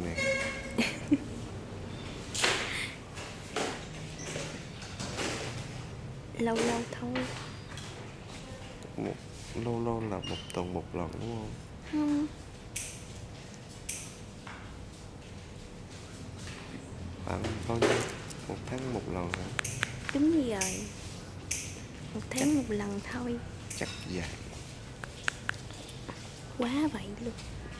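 A young woman talks softly close by.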